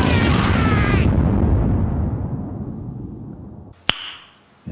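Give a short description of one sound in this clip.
An explosion roars and rumbles, then slowly fades.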